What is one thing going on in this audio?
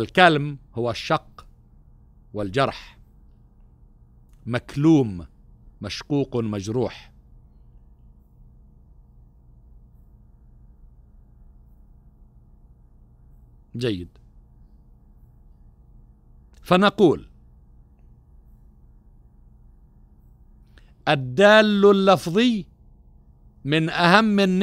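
A middle-aged man speaks into a microphone in short, halting phrases with long pauses.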